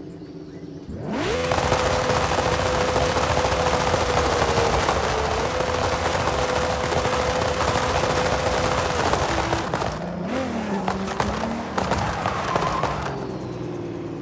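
A car engine revs hard and roars loudly.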